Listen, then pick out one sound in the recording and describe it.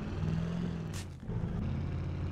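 An SUV lands hard with a thump.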